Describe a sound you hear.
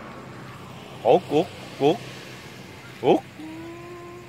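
A sea lion gives several short, hoarse barks nearby.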